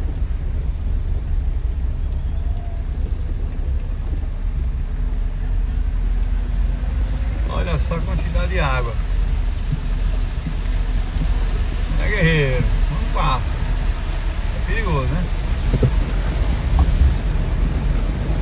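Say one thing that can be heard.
Tyres splash through flowing floodwater.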